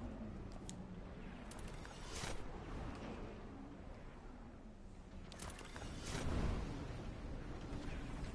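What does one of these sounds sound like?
A storm rumbles and whooshes with deep swells.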